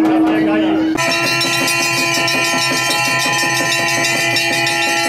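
Large bells ring loudly and repeatedly, with a ringing tone that hangs in the air.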